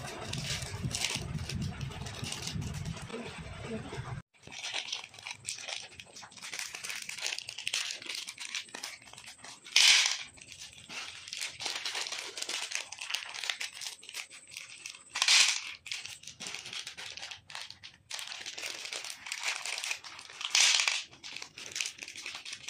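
A plastic candy wrapper crinkles and tears in the hands.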